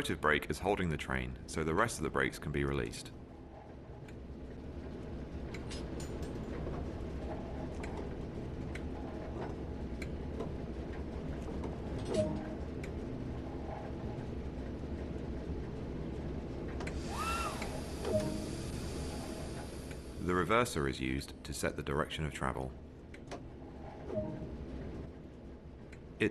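A diesel engine idles with a low, steady rumble.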